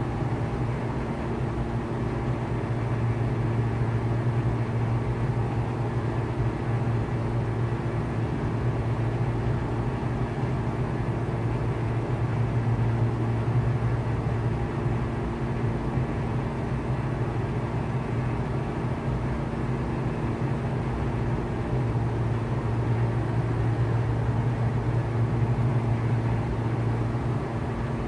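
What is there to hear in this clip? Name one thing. A small propeller plane's engine drones steadily from inside the cabin.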